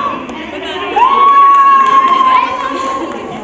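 A young woman holds a long, high cheering shout.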